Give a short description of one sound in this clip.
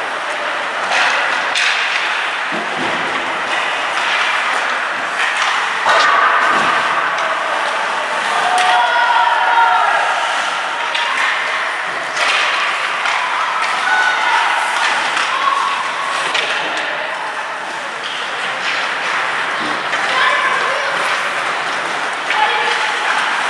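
Hockey sticks smack pucks with sharp cracks that echo through a large hall.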